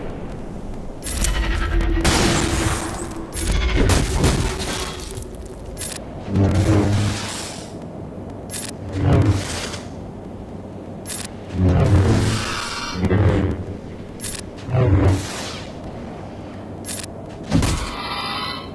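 Blasters fire in short bursts.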